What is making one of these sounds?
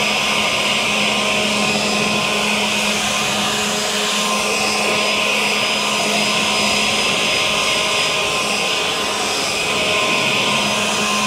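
A battery leaf blower whirs steadily with a loud rushing of air.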